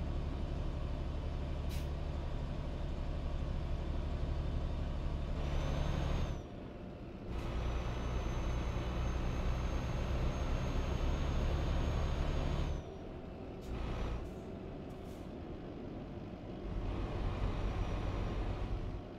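A truck engine drones steadily, growing louder and softer at times.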